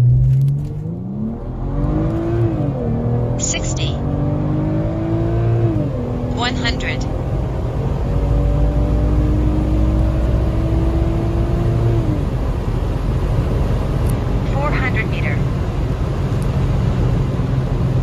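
Wind and tyres roar steadily as a car speeds along.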